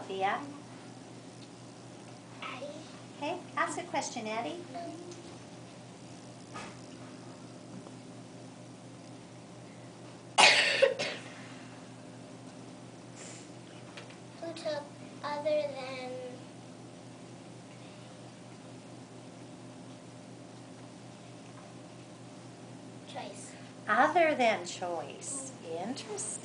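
Young children talk in short bursts.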